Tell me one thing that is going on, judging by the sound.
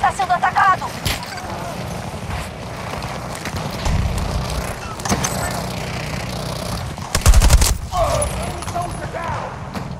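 A rifle fires bursts of gunfire.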